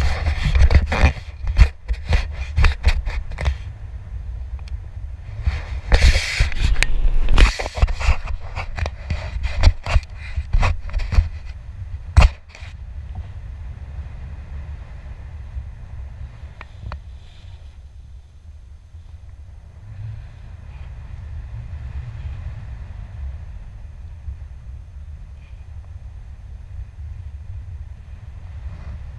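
Wind rushes and buffets loudly against a microphone, then settles to a steadier roar.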